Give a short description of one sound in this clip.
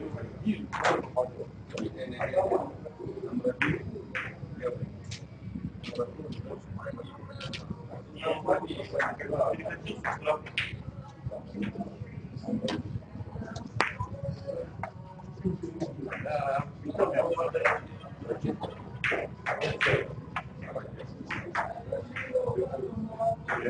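Men talk casually in the background.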